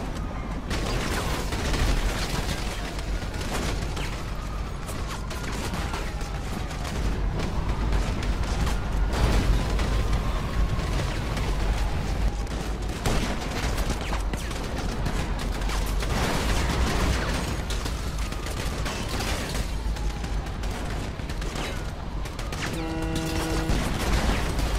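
Gunshots crack repeatedly.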